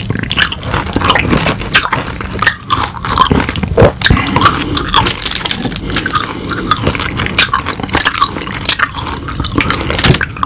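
A man chews crunchy food loudly and wetly close to a microphone.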